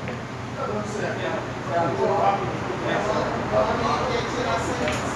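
Several men talk with animation nearby.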